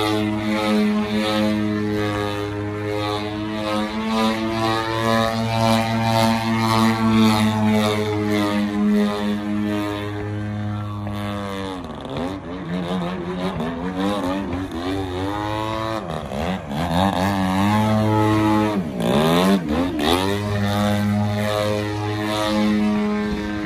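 A model plane's engine buzzes loudly overhead, its pitch rising and falling as it loops and dives.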